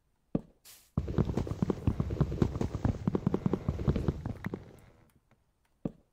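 A block is chipped away with rapid scraping taps and crumbles.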